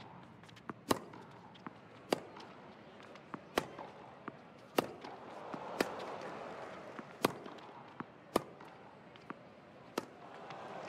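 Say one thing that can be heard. Tennis rackets strike a ball back and forth in a steady rally, with sharp pops.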